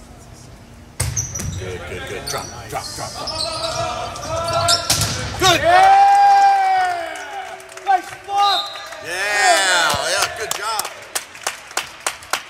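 Players shout and cheer in a large echoing gym.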